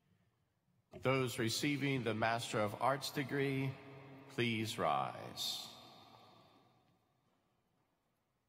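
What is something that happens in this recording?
A middle-aged man speaks into a microphone, reading out in a large echoing hall.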